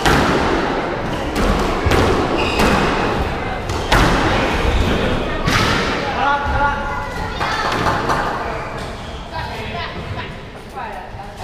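Sneakers squeak on a wooden court floor.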